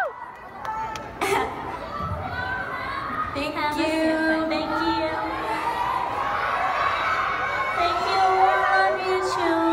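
A young woman sings through loudspeakers in a large hall.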